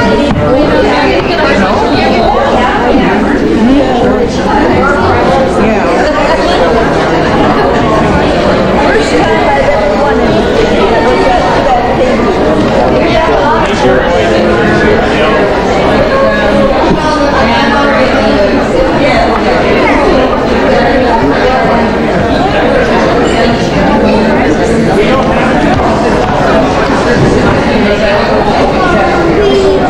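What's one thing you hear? A crowd of adults and children chatters at once, close by.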